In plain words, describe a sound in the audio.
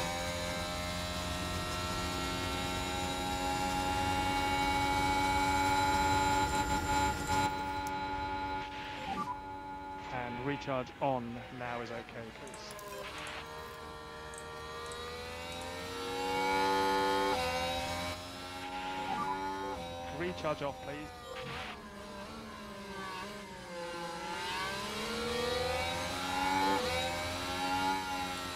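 A racing car engine roars and whines, its pitch rising and falling as it shifts gears.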